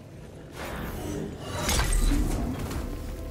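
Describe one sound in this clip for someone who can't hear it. A gun fires a loud burst.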